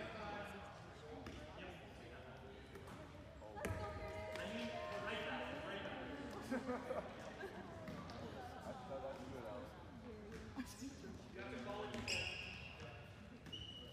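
A ball thuds on the wooden floor.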